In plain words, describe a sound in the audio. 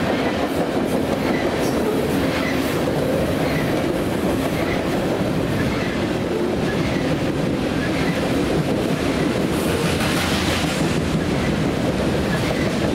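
A long freight train rumbles steadily past along the tracks.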